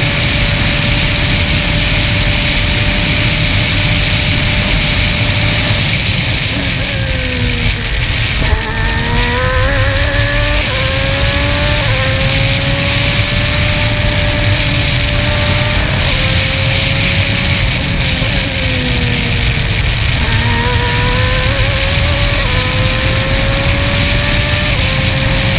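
Wind rushes loudly past the car.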